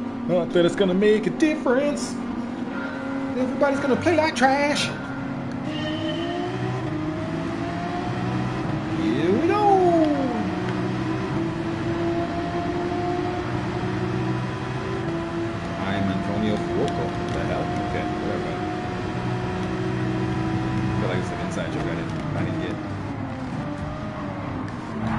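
A racing car engine roars and revs steadily at high speed.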